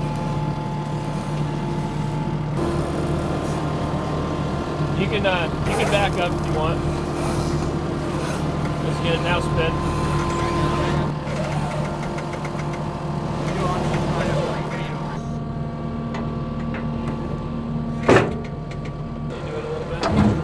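A loader's diesel engine idles with a steady hum.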